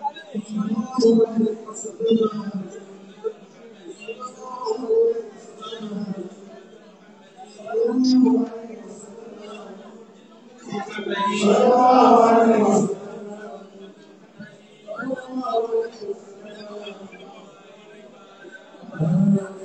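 A crowd of men and boys chant together in a group, heard up close in a room.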